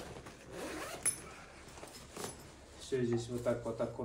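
A fabric bag rustles as it is folded open.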